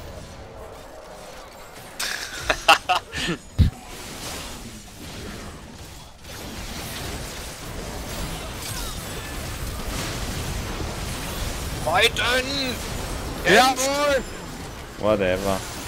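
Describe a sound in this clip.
Fighting sound effects clash and burst from a video game.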